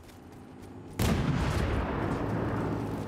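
A tank engine roars close by.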